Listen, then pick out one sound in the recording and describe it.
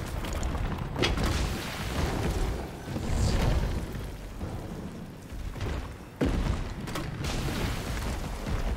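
Explosions burst and splatter.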